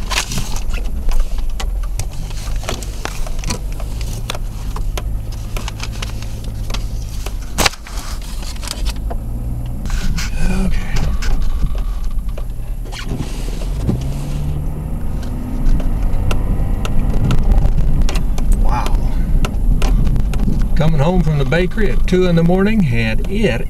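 Blowing snow patters and ticks against a surface close by.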